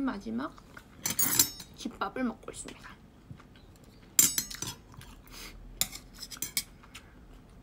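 A young woman chews and smacks her lips.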